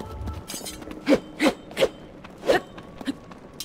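A sword swooshes through the air several times.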